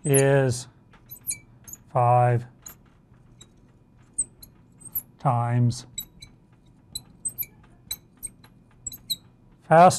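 A marker taps and squeaks against a board.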